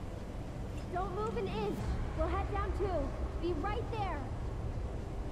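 A young woman calls out loudly from a distance.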